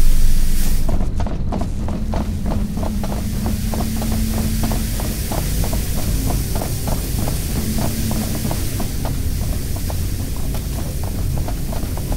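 Heavy boots tramp on a metal floor in quick, steady steps.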